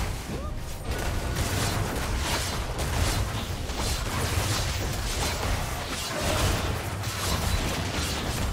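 Video game fight sounds of spells and hits burst and clash rapidly.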